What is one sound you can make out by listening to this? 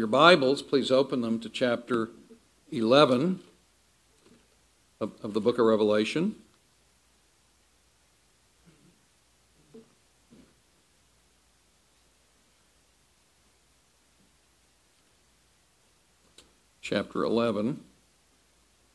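An elderly man speaks calmly through a microphone in a large room, pausing between phrases.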